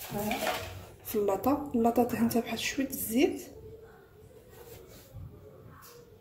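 A metal baking tray clatters as it is set down.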